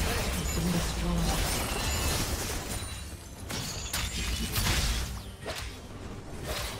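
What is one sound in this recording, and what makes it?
Spell effects and attacks crackle and clash in a video game battle.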